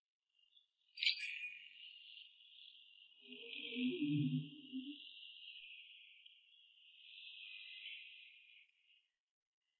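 A small bell rings with a bright, lingering chime.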